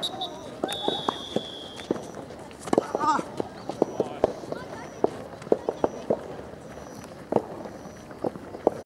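Young players shout to each other across an open field, far off.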